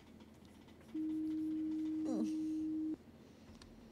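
A steady electronic tone hums.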